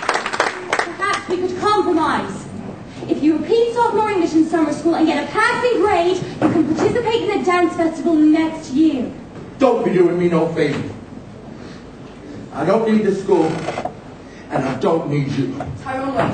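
A young woman speaks with feeling on a stage.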